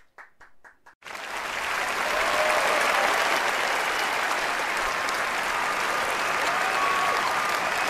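A large audience applauds in a big hall.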